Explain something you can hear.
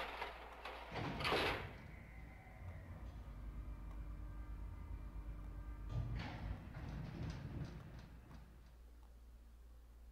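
A lift hums steadily as it moves.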